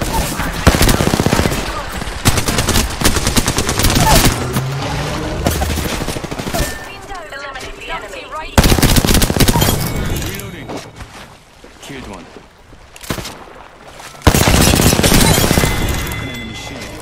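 Rapid gunfire rattles in loud bursts.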